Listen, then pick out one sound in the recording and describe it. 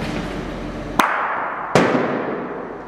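Heavy bowling balls knock together sharply with an echo.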